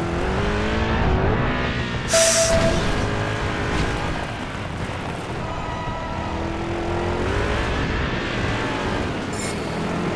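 A buggy engine revs loudly, rising and falling in pitch.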